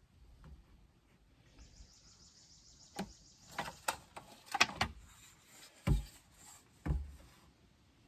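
A metal post hole digger scrapes and crunches into gravelly soil.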